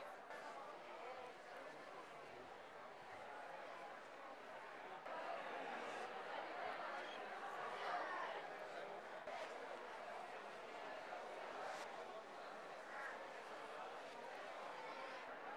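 A crowd of people chatters and murmurs in a large echoing hall.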